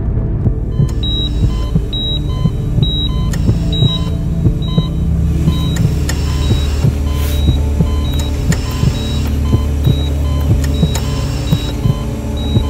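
A patient monitor beeps steadily at an even pace.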